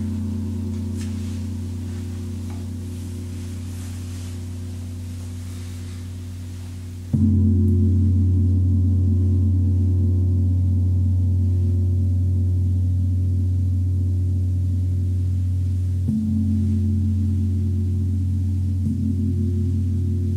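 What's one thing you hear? Large gongs hum with a deep, steady drone that swells with each soft mallet stroke.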